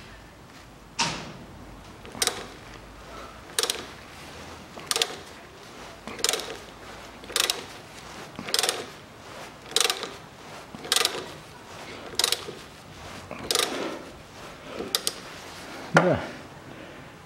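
A ratchet wrench clicks in short bursts as it is cranked.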